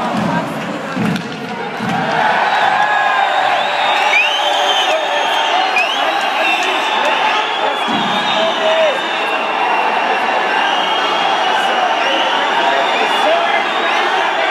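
A large crowd cheers and chants loudly in a big echoing arena.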